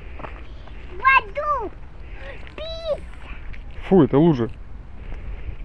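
A young child babbles in short high cries.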